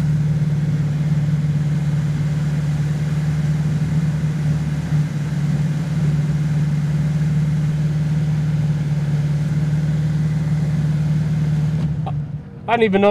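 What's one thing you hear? A sports car engine idles with a low, steady hum.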